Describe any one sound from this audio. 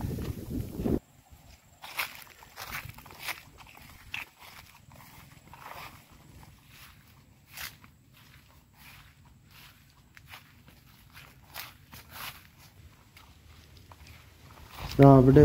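Footsteps swish and crunch through dry grass.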